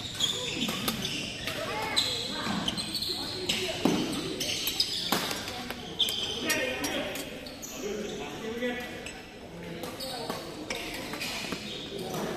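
Shoes squeak on the court floor.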